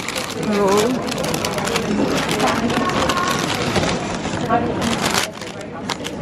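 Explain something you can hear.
Paper wrapping crinkles and rustles close by.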